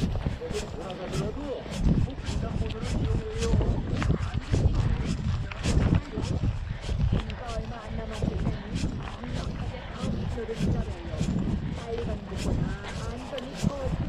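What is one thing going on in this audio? Footsteps pound quickly and steadily on a paved path.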